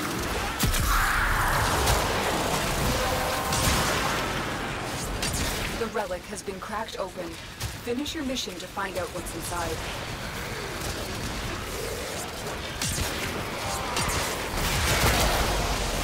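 Energy blasts swoosh and boom.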